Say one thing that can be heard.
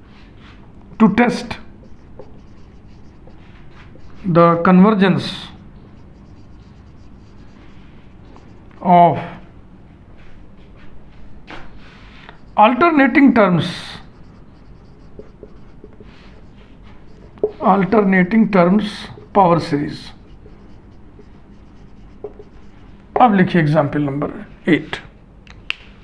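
A man speaks in short, calm phrases close by.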